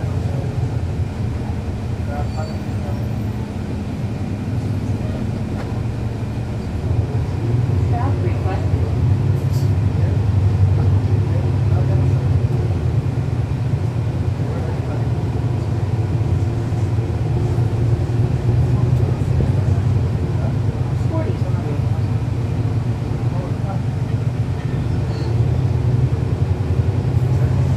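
A bus engine idles with a steady low rumble close by.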